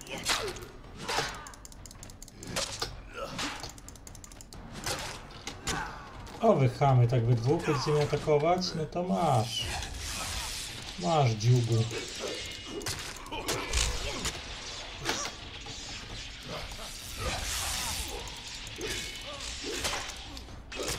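Swords clash and magic blasts crackle.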